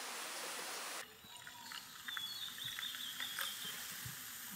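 Soda pours into a metal cup.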